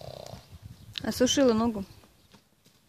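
A horse whinnies loudly nearby.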